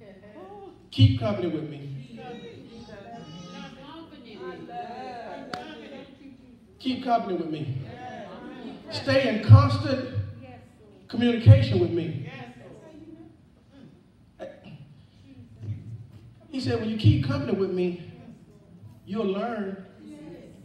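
A man preaches with animation through a microphone, in an echoing hall.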